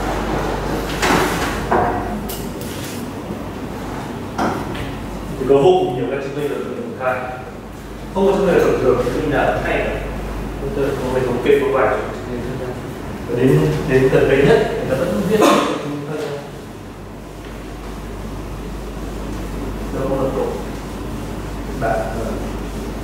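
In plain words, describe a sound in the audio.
A man lectures with animation in a large echoing hall.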